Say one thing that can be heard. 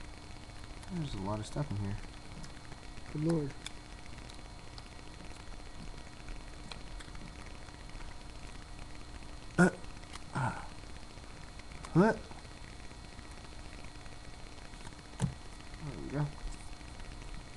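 A young man speaks in short, quiet bursts close to the microphone.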